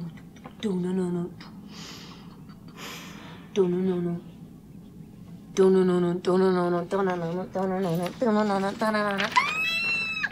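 A young woman sings in a high voice over an online call.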